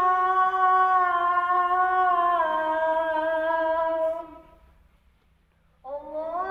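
A man chants loudly in long, held, wavering notes, pausing briefly before starting again.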